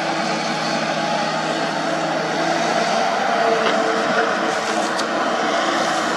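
A diesel engine of an excavator drones steadily close by.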